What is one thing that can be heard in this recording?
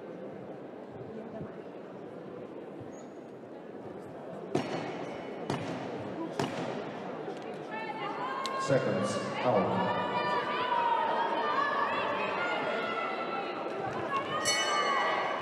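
A crowd in a large echoing hall cheers and shouts, growing louder.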